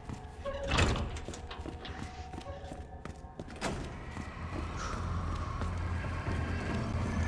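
Footsteps climb metal stairs.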